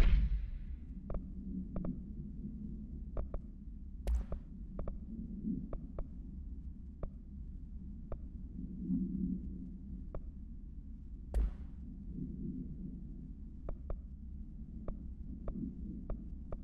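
Soft clicks tick now and then as menu options are selected.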